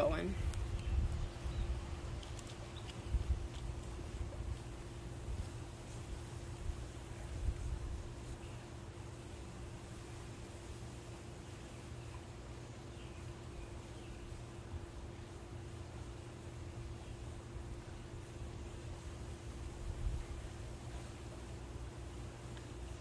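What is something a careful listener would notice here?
Water swirls and laps gently inside a pool skimmer.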